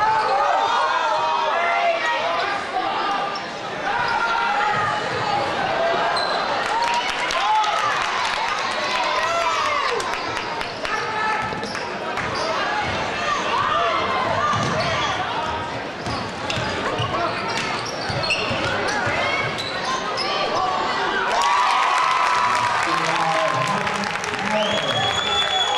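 A crowd cheers and shouts throughout a large echoing gym.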